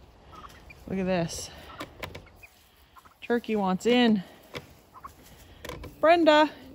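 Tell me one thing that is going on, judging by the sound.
A turkey calls nearby with short, warbling yelps.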